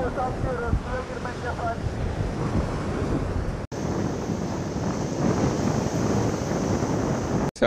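Waves break and wash onto the shore.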